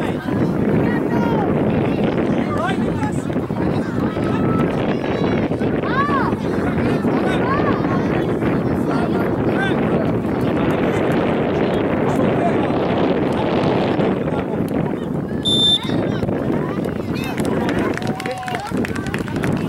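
A crowd of spectators chatters and calls out outdoors.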